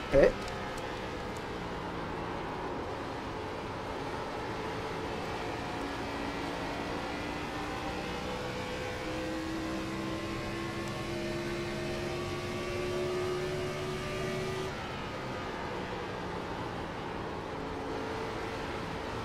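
Other race cars drone past close by.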